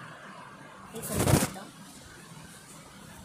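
A short celebratory chime plays.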